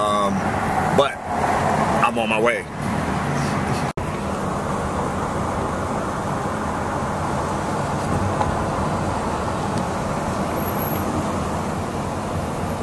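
A car's engine and tyres rumble steadily on a road.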